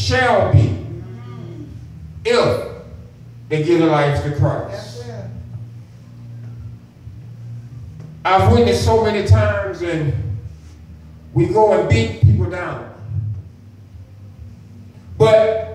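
A man preaches with emphasis into a microphone, heard through loudspeakers in a room with some echo.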